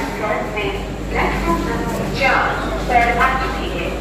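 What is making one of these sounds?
Adult men and women chatter in a busy crowd nearby.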